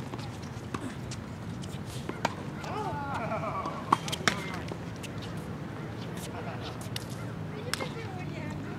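Tennis balls are struck with rackets with sharp pops.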